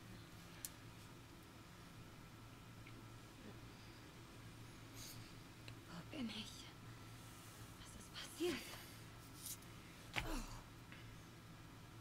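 A young woman gasps and breathes heavily.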